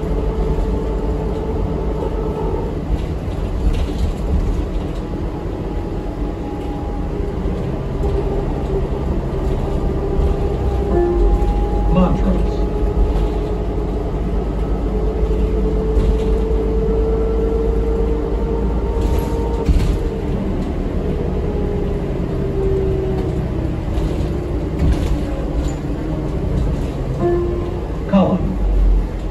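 A bus body rattles and creaks over the road.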